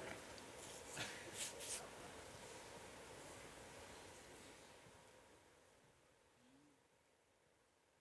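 A crowd murmurs and rustles, then slowly quietens.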